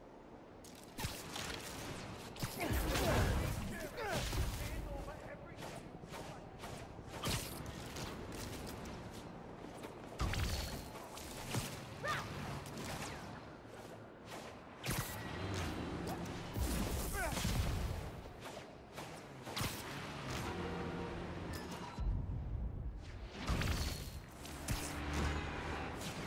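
Web lines shoot out with short, sharp snaps.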